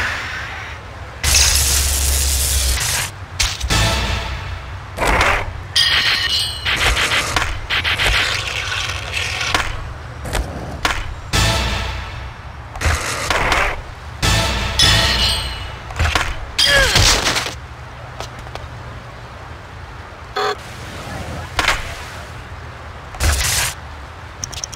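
Skateboard wheels grind and clatter on rails and concrete.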